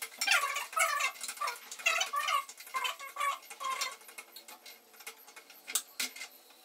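A spatula scrapes and taps in a frying pan.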